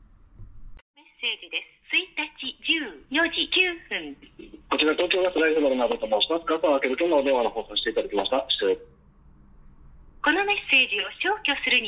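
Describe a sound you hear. A man's voice speaks quickly through a small phone speaker.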